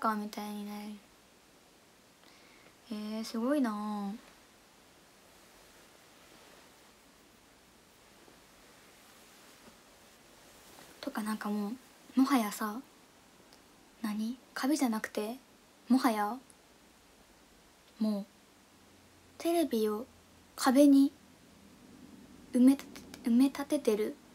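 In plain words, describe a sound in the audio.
A young woman talks casually and close to a microphone, in short bursts with pauses.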